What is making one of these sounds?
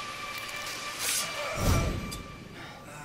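A blade stabs with a heavy thud.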